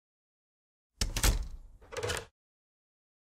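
A door opens and bangs.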